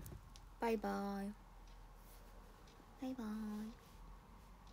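A young woman speaks briefly and softly close by, in short drawn-out words.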